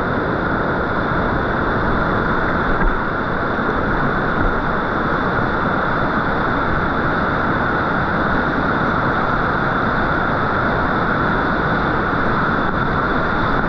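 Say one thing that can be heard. Rough white water roars and churns loudly all around, close by.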